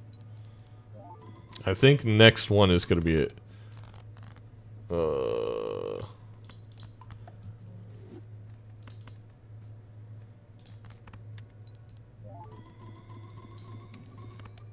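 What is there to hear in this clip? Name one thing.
Electronic chimes ring in rising steps.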